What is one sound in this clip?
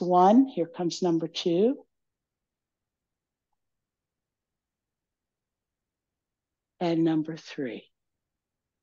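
A middle-aged woman speaks calmly and clearly into a close microphone.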